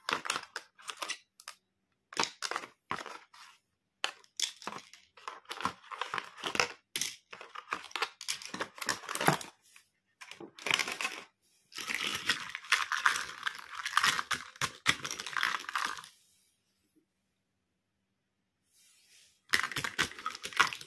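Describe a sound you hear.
Plastic toy pieces clatter and click as they are handled.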